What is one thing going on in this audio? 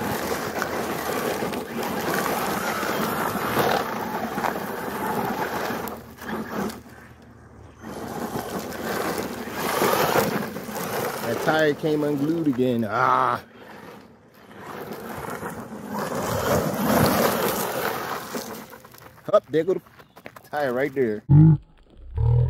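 Tyres spin and spray loose gravel.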